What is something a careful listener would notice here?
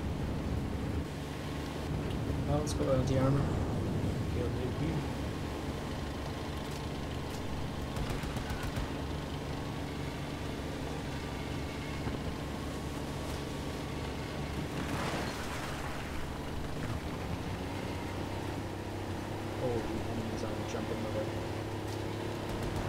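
A tank engine rumbles steadily and low.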